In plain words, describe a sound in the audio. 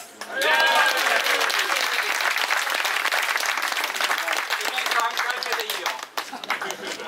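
A group of people clap their hands rapidly and cheer.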